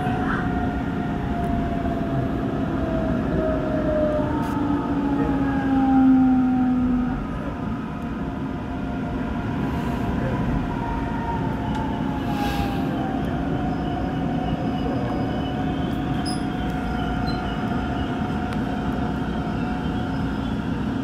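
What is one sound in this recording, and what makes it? An electric commuter train rumbles along the rails, heard from inside as it slows into a station.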